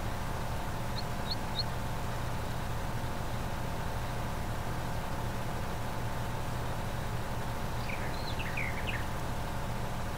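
Birds chirp briefly.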